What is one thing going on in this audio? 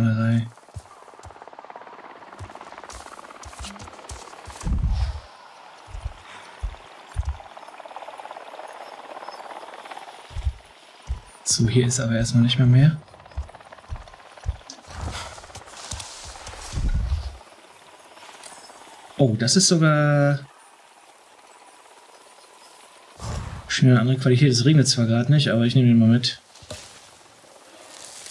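Footsteps rustle through dense undergrowth.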